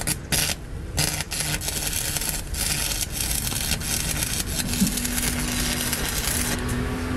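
A cutting torch hisses and crackles steadily as it cuts through metal.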